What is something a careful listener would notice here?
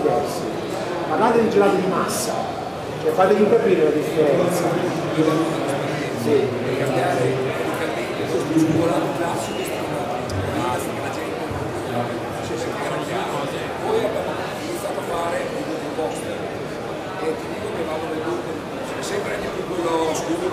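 A man talks with animation through a microphone over loudspeakers, in a large echoing hall.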